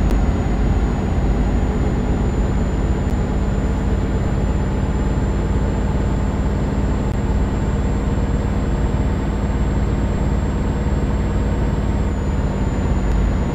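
Tyres roll on an asphalt road.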